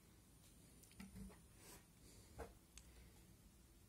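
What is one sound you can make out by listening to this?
Hands handle a hard drive and a plastic enclosure with light clicks and taps.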